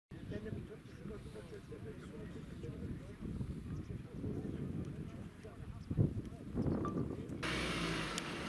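A crowd of men murmurs quietly outdoors.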